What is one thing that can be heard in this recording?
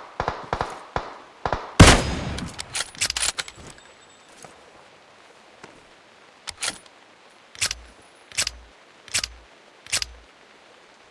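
Rifle shots crack loudly several times.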